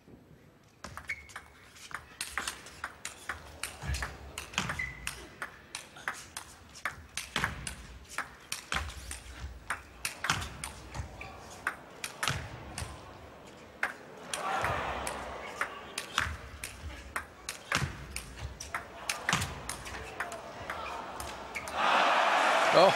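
A table tennis ball clicks back and forth quickly on paddles and table.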